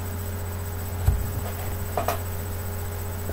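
A tablet bumps and knocks as it is set down close by.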